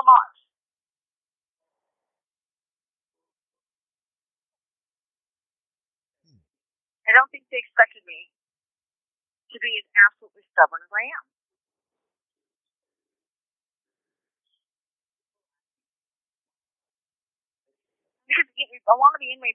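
A young woman speaks in short bursts through a microphone, with long silences between.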